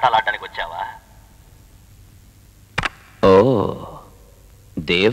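A man speaks urgently into a walkie-talkie, close by.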